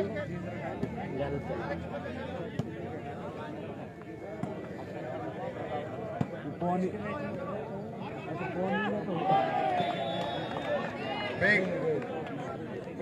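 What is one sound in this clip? A large crowd chatters and calls out in the open air.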